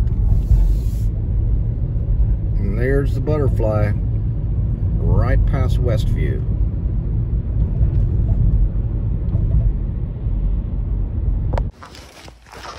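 A car engine and tyres rumble steadily on the road.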